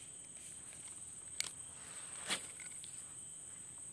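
Grass rustles underfoot.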